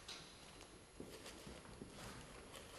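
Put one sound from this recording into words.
A viola is bowed.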